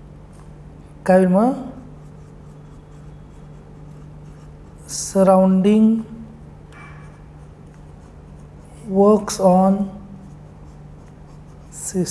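A marker squeaks softly as it writes on paper.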